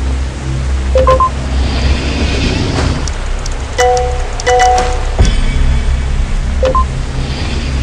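A bright game chime rings out.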